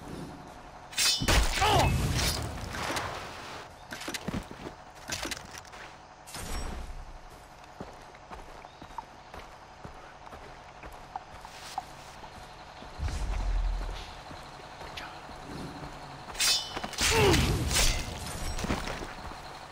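A knife strikes a man in a sudden, violent scuffle.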